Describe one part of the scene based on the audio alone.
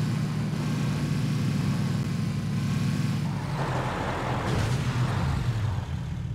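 A car engine rumbles steadily as the vehicle drives.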